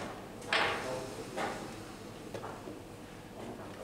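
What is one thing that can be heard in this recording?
A chess clock button is pressed with a sharp click.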